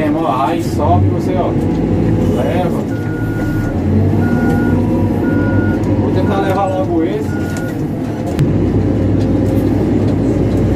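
A heavy diesel engine rumbles steadily from inside a machine's cab.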